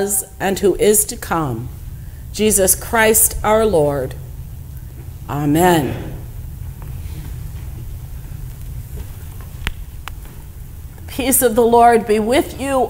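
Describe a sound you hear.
A man speaks slowly through a microphone in an echoing hall, with pauses.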